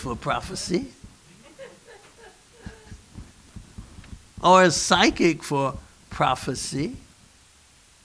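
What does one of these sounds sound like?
A middle-aged man preaches with animation into a microphone.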